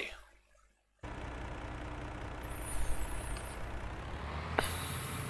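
A truck engine rumbles as the truck pulls away.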